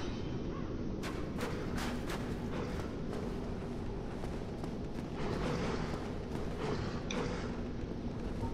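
Footsteps scuff across a stone floor.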